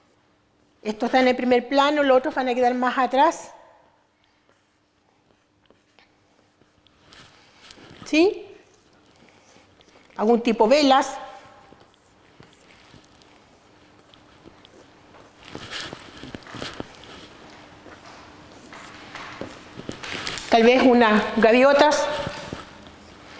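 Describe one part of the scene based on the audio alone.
A middle-aged woman speaks calmly nearby.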